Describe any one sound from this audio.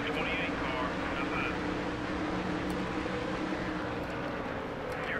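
Racing car engines roar loudly at high speed.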